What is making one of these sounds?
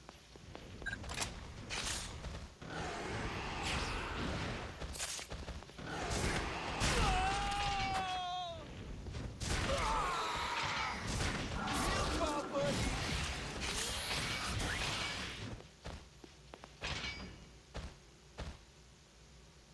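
A sword slashes and clangs against a monster in quick strikes.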